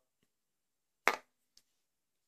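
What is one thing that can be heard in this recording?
A glass light bulb clicks as it is set down.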